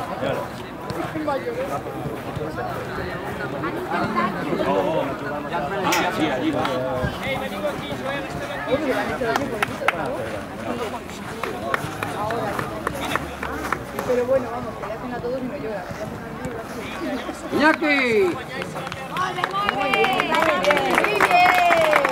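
Young boys chatter and call out in a crowd outdoors.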